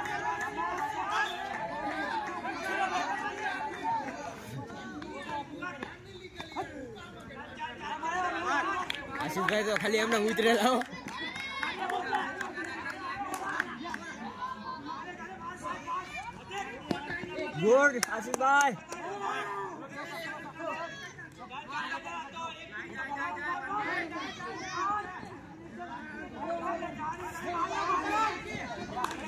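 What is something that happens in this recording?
A crowd of young men and boys shout and cheer outdoors.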